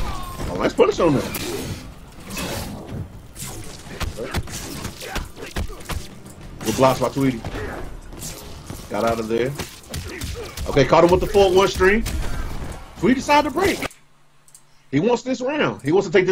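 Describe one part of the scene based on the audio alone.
Punches and kicks land with sharp thuds in a fight.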